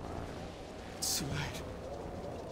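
A young man speaks briefly and quietly.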